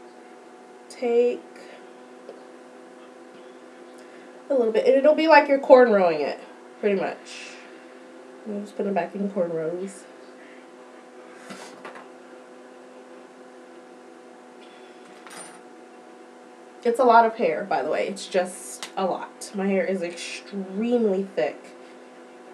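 A young woman talks close by, calmly, in bursts with pauses.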